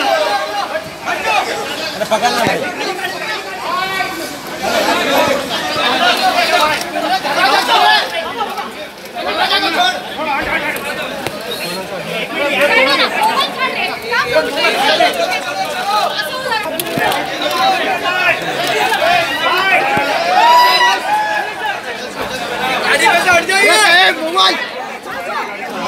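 A crowd of men talk and shout over each other close by.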